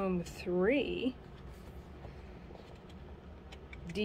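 A paperback book's paper pages rustle as a page is turned.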